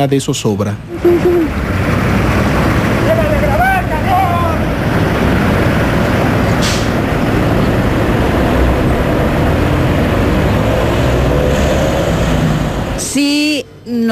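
An armored vehicle engine rumbles loudly as it drives by.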